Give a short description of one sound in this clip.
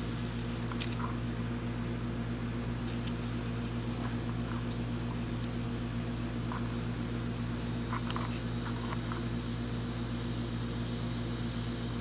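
Two puppies growl softly while tugging a toy.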